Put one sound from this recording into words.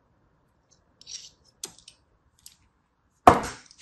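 A knife slices through soft sand with a faint scrape.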